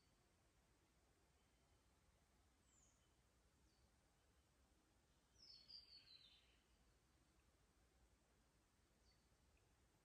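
A shallow creek trickles softly over stones.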